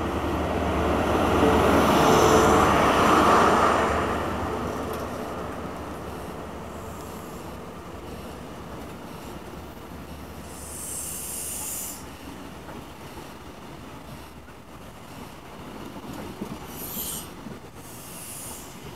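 A train's wheels clatter over the rails.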